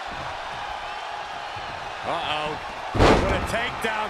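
A body slams hard onto the ring mat.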